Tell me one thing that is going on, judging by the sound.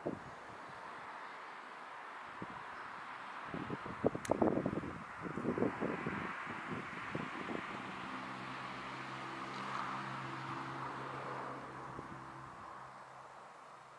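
A car drives past on a distant road.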